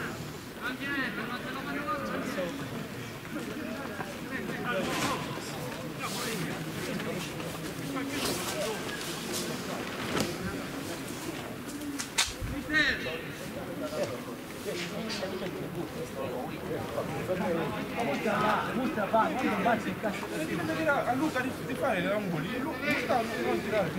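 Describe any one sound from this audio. Young men call out and talk at a distance outdoors.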